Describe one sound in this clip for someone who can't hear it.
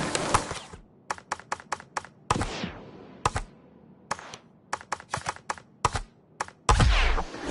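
Menu selections click in quick, sharp ticks.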